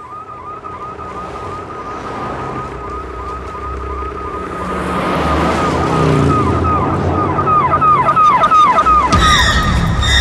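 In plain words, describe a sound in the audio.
A police siren wails rapidly up and down.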